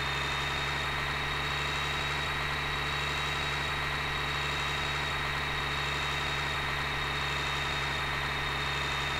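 Tyres hum on a road.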